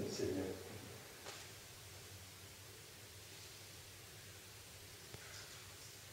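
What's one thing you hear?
An elderly man speaks calmly, briefly and with pauses.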